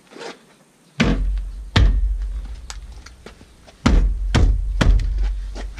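A car door panel thumps and rattles.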